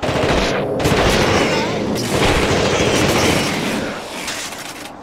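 Gunfire bursts out loudly in rapid shots.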